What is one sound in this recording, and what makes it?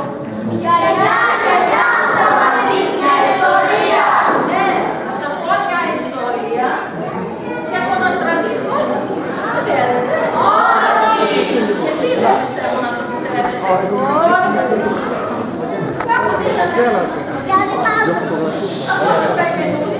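An adult man speaks loudly and dramatically to an audience in a large echoing hall.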